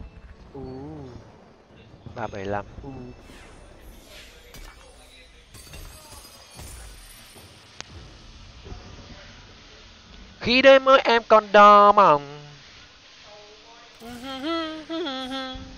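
Electronic game effects clash and chime.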